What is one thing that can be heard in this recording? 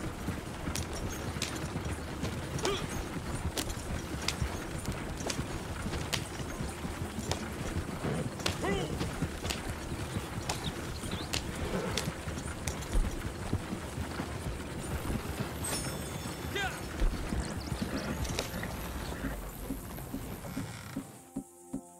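Horse hooves clop steadily on a dirt road.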